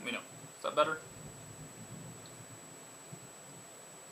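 A man sips from a mug.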